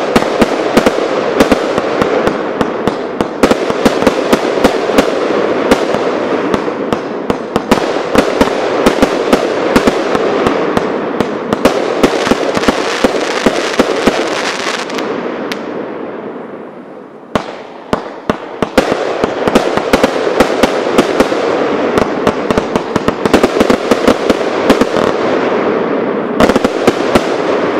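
Firework shells hiss and whoosh as they launch.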